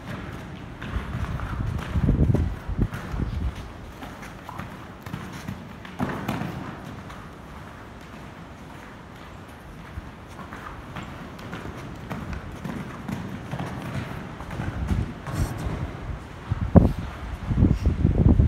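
Horse hooves thud on soft sand.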